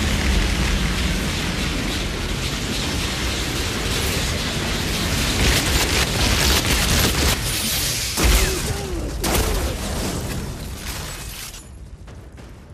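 A roaring, crackling energy blast surges loudly.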